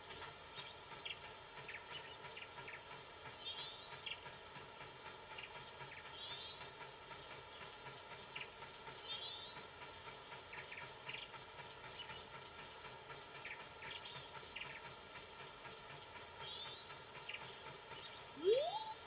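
Quick light footsteps patter from a video game.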